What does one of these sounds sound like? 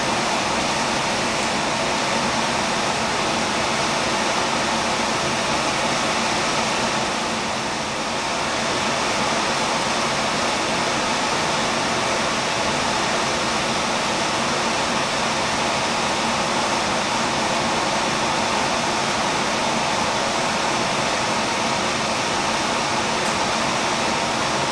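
A ventilation fan hums steadily.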